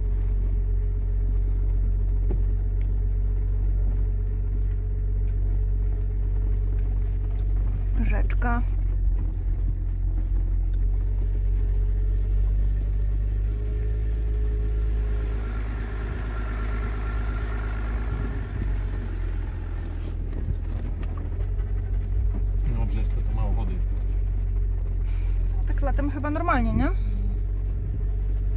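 A car engine rumbles low and steady from inside the cabin.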